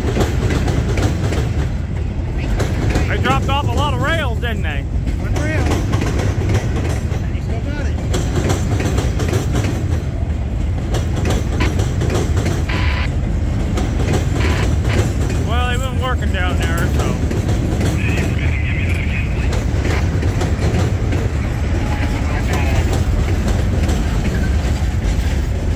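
A long freight train rumbles and clatters past up close.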